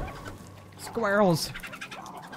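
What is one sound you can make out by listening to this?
A small animal squeaks with a quick falling cry.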